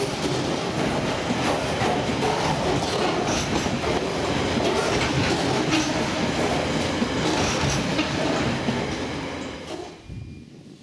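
Freight wagons rattle and clatter loudly past close by.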